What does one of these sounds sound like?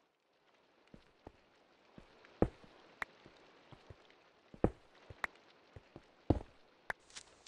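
Stone blocks are set down with short dull knocks.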